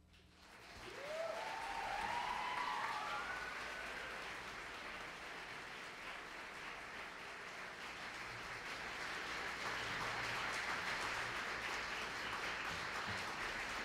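A jazz big band plays in a large echoing hall.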